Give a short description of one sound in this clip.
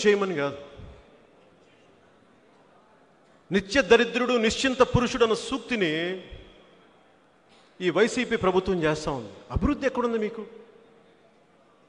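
A man speaks forcefully into a microphone, in bursts with pauses.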